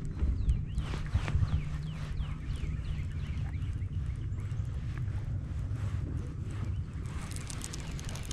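A fishing reel whirs softly as it is wound in.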